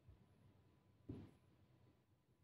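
A chess piece taps down on a wooden board.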